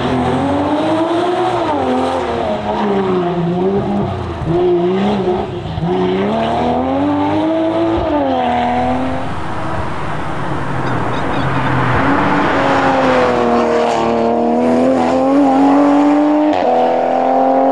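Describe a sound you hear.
A turbocharged inline-six sports car accelerates hard, shifting up through the gears.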